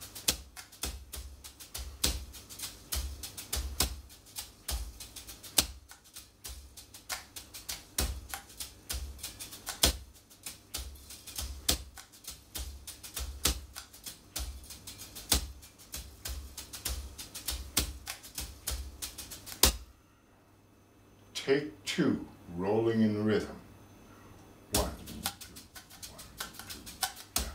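Drumsticks tap rapidly on a practice pad, close by.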